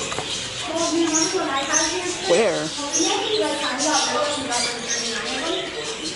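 Small birds chirp and tweet nearby.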